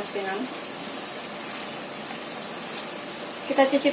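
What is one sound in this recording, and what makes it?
A spatula scrapes and stirs food in a pan.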